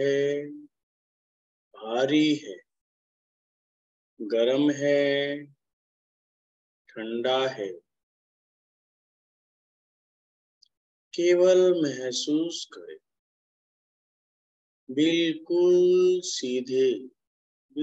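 A man speaks in short phrases with long pauses, heard through an online call.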